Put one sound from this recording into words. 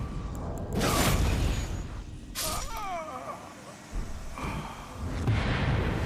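A magical effect whooshes and rings out in bursts.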